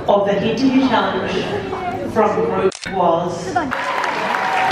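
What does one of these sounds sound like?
A woman speaks into a microphone over loudspeakers in a large hall.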